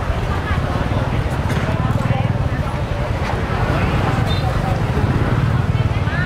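Plastic bags rustle as a shopper picks vegetables.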